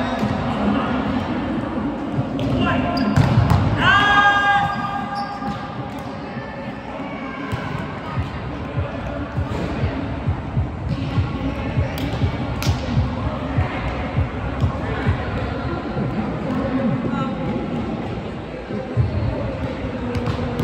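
Sneakers squeak and thud on a hard court.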